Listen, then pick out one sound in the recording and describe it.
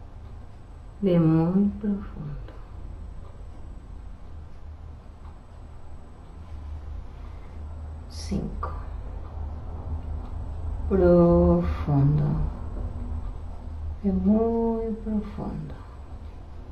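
A woman speaks in short phrases.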